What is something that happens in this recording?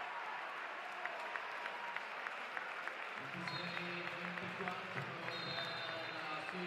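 A crowd claps in a steady rhythm.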